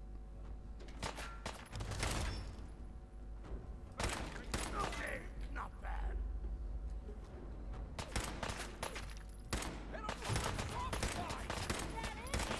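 Rifle shots fire in sharp bursts.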